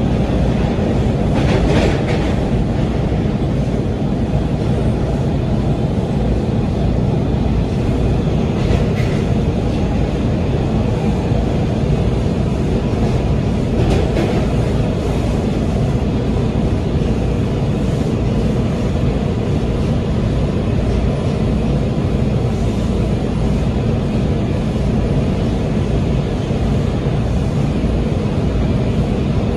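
A subway train rumbles and roars steadily along the tracks.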